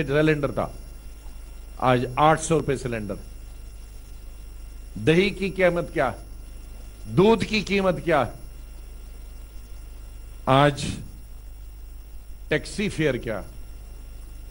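A man speaks into a microphone in short phrases with pauses.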